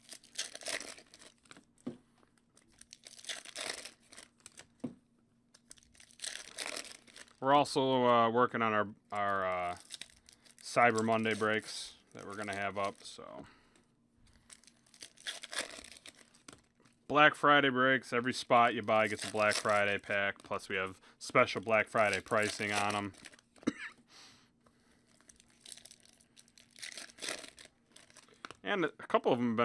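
Foil wrappers crinkle and tear as they are pulled open.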